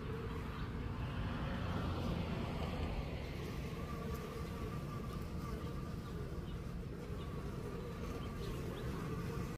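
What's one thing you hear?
A bee buzzes close by.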